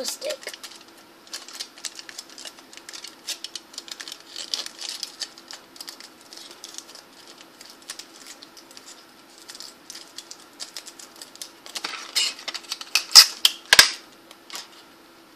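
Foil crinkles and rustles in a girl's hands.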